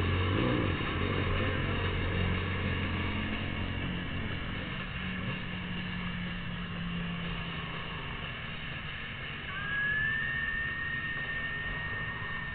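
A motorcycle engine idles and rumbles up close.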